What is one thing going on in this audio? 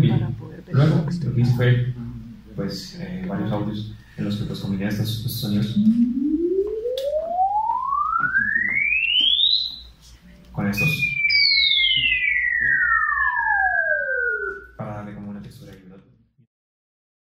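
Electronic sounds play through loudspeakers in a room, with tones sliding up and down.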